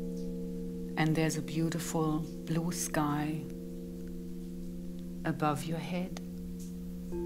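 A woman sings softly into a microphone.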